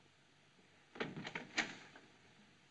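A door opens with a knock and creak.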